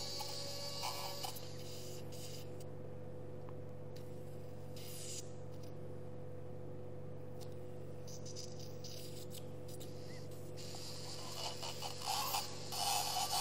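A suction tube hisses and slurps steadily.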